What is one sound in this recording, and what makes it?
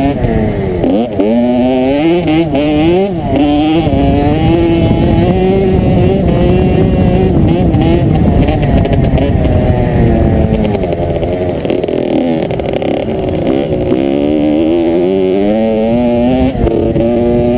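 A dirt bike engine revs loudly, rising and falling as the rider shifts gears.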